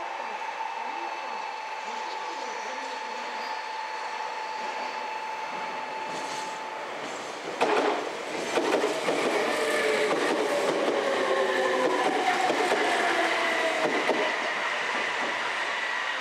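An electric train approaches and rumbles past close by.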